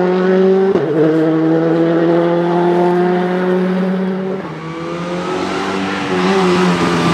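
A rally car engine revs high and changes gear.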